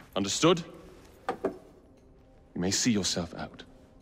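A metal cup clinks on a wooden desk.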